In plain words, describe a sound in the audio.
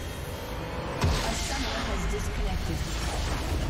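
A bright magical burst booms as a structure is destroyed.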